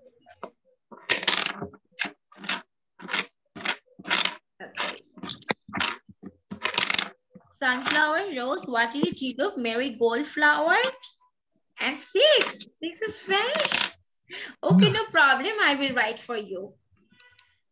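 A young boy speaks in short bursts through an online call.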